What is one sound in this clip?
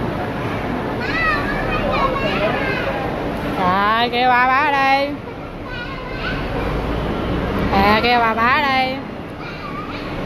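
A young girl squeals and shrieks excitedly nearby.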